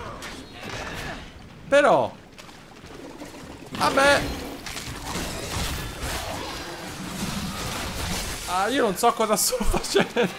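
A sword swings and slashes with sharp whooshes and hits.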